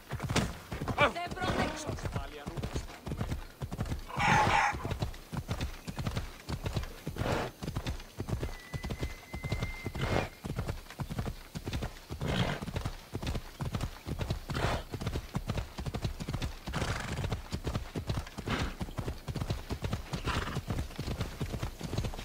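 Horse hooves thud steadily on a dirt path at a gallop.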